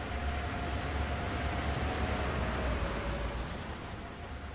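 A diesel locomotive engine drones steadily as a train rolls along.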